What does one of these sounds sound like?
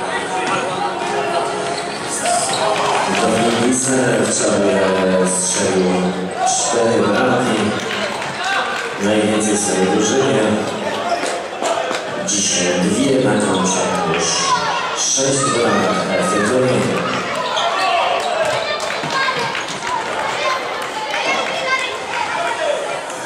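A futsal ball is kicked and bounces on a court in an echoing hall.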